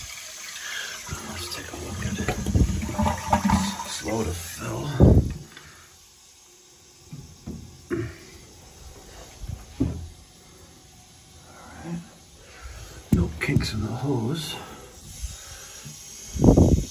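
Hands fumble and knock against hard surfaces close by.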